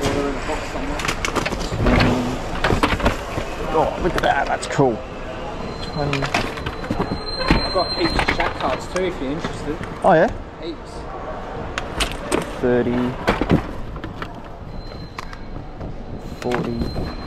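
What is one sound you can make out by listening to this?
Plastic toys rattle as a hand rummages through a box.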